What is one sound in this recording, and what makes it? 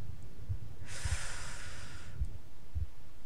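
A small fire flares up with a soft whoosh.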